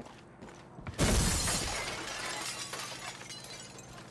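A window pane shatters with a loud crash and glass tinkles down.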